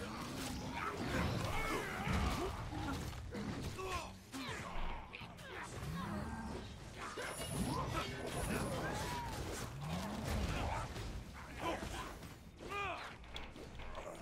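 Monsters growl and roar.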